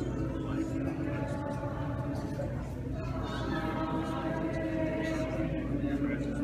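A man chants steadily in a large echoing hall.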